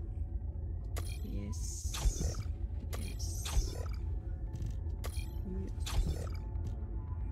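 Short electronic menu chimes and whooshes sound as items slot into place.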